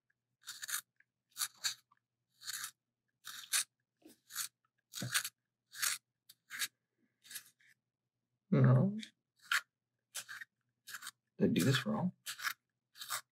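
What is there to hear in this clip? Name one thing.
A pencil grinds in a hand-cranked sharpener in short bursts.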